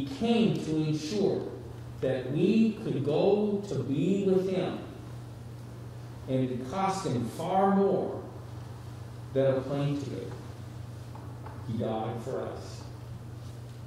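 A middle-aged man speaks calmly into a microphone, in short phrases with pauses.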